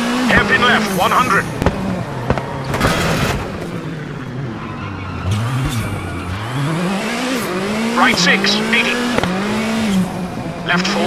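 Car tyres squeal sharply while cornering.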